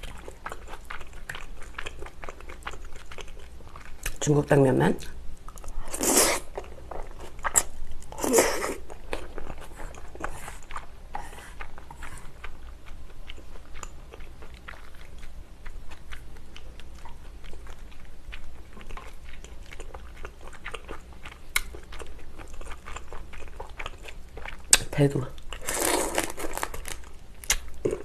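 A young woman chews food wetly, close to the microphone.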